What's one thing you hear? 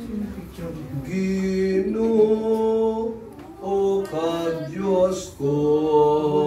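A man sings slowly through a microphone.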